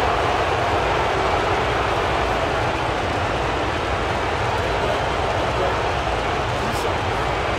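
A large arena crowd roars steadily.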